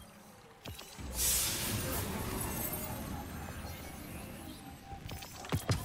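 A glowing chest bursts open with a loud shimmering rush.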